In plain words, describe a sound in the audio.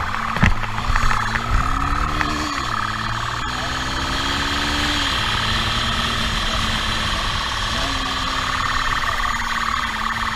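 A motorcycle engine hums and revs up and down as it rides.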